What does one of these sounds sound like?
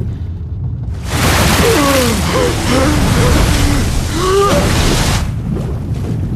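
Rough sea water splashes and churns loudly.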